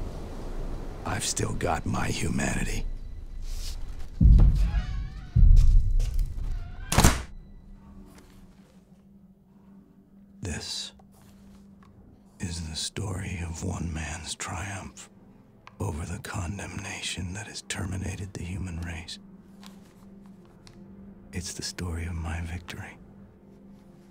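A man speaks slowly and calmly, close by.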